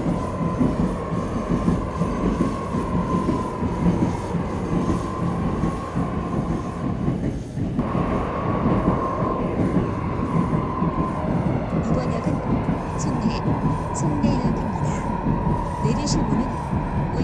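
A subway train rumbles steadily along the tracks, with a whining hum.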